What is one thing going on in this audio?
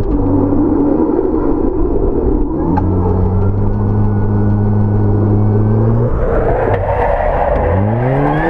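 Tyres scrub and skid on a loose dirt surface.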